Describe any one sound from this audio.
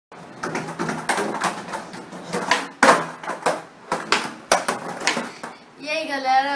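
Skateboard wheels clatter and click over a tiled floor.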